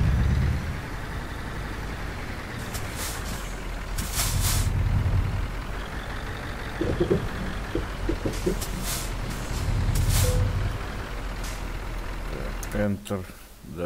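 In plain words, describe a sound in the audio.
A truck engine rumbles steadily at low speed.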